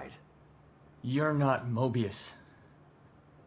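A second man answers in a gruff, low voice.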